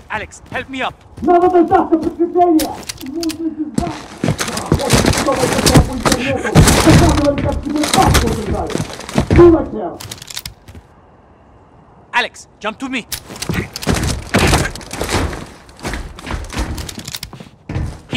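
A man speaks urgently nearby.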